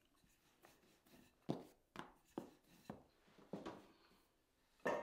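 A rolling pin thumps and rolls on a wooden board.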